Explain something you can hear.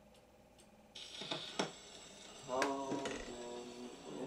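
An old gramophone plays scratchy music through its horn.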